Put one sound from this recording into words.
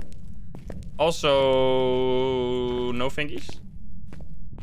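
A young man speaks with a drawn-out voice close to a microphone.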